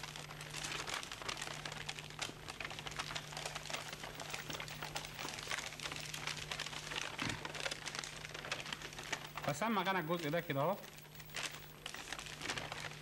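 Sheets of paper crinkle and rustle as they are folded and unfolded.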